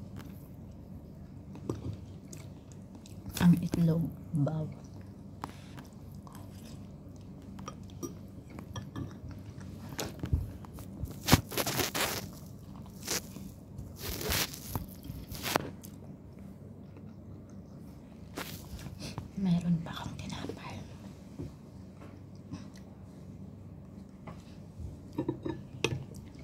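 A fork clinks against a ceramic bowl.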